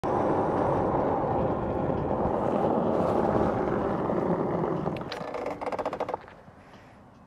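Wind buffets loudly past the rider while riding outdoors.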